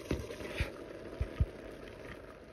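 Chopped onion drops into a pan with a soft patter.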